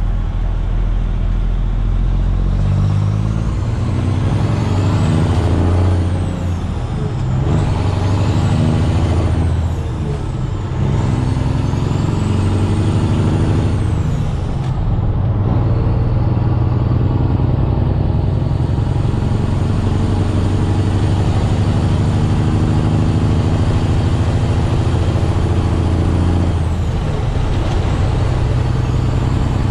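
A truck's diesel engine rumbles loudly and changes pitch.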